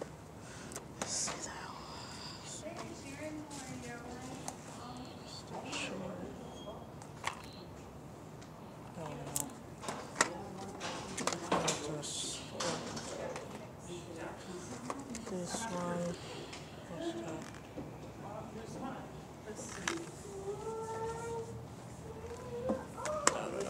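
A young woman talks casually close to a phone microphone.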